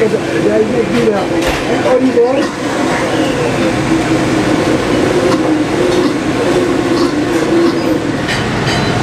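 An elderly man talks calmly.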